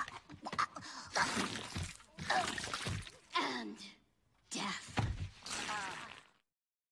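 A young woman cries out dramatically, close by.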